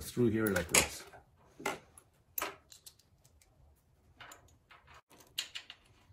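A metal tool clicks and taps against metal parts.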